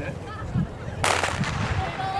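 A starting pistol fires once with a sharp crack.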